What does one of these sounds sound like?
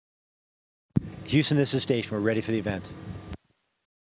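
A man speaks into a microphone over a radio link.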